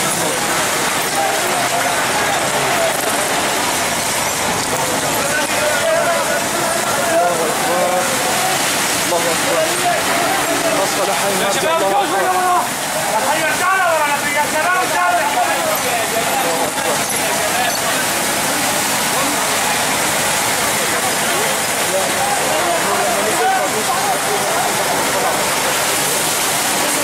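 Men shout outdoors.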